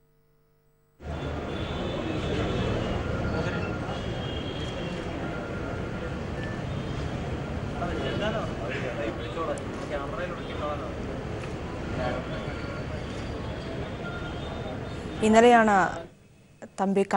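A crowd of men murmurs and talks nearby.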